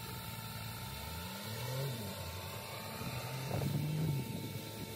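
A car engine hums as the car drives past.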